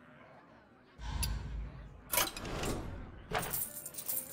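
Game menu sounds chime and whoosh.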